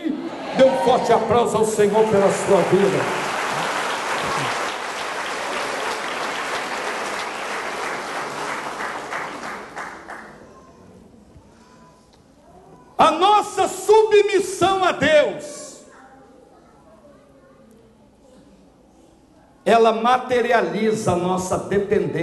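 A man speaks forcefully into a microphone, heard through loudspeakers in an echoing hall.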